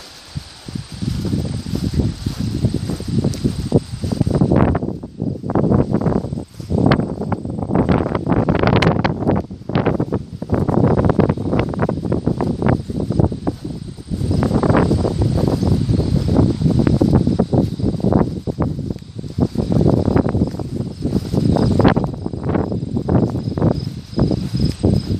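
Wind blows in gusts outdoors, rumbling against the microphone.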